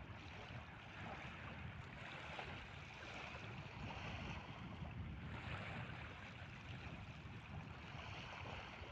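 Small waves wash gently onto a sandy shore in soft, rolling surges.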